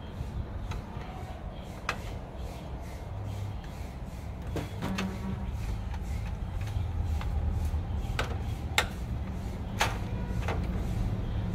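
Small metal parts clink and knock.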